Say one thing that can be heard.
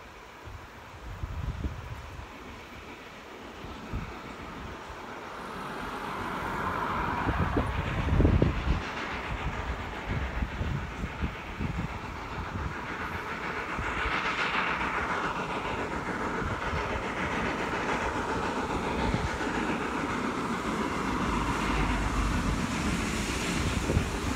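Train wheels rumble on rails in the distance, growing louder.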